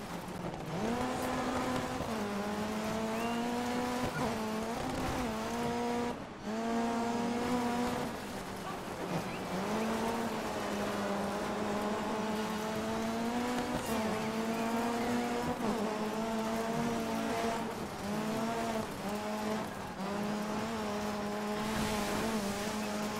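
A rally car engine revs high and shifts gears.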